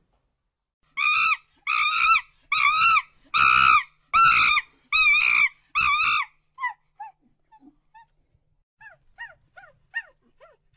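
A monkey calls with quick repeated chirps.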